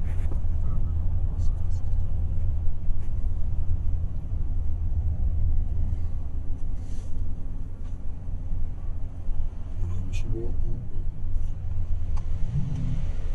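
A car engine hums steadily with low road rumble, heard from inside the car.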